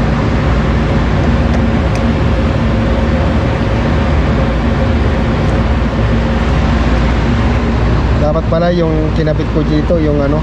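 A screwdriver scrapes and clicks against terminal screws.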